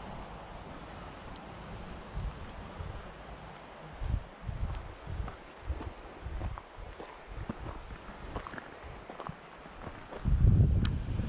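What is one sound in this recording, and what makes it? Footsteps crunch on a dry dirt path.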